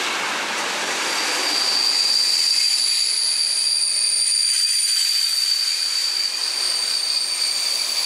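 Train brakes squeal with a high, steady whine.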